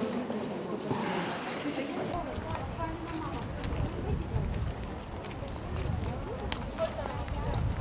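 A crowd of men, women and children chatters nearby.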